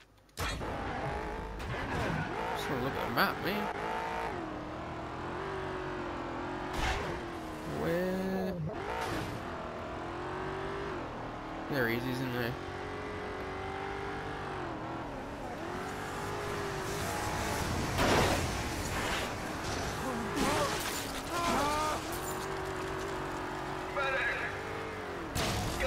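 A video game car engine revs.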